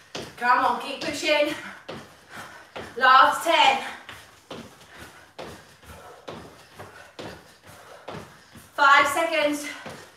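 Feet land with thuds on a floor in quick jumps.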